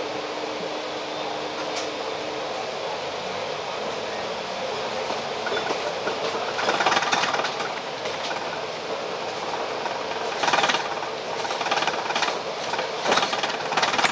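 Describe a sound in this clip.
A tram rumbles and rattles along its rails.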